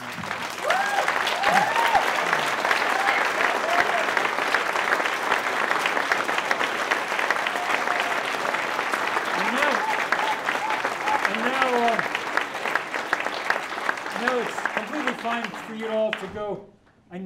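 An audience applauds loudly in a room.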